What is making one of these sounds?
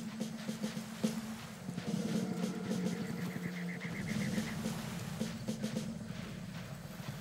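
Footsteps crunch steadily on rough ground.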